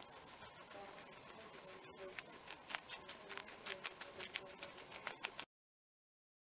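A guinea pig munches crunchy lettuce up close.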